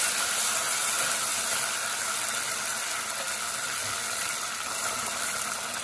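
A spatula scrapes against the pot while stirring.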